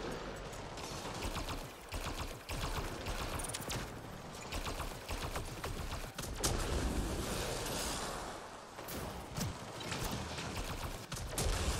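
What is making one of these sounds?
Rapid gunfire crackles and pops.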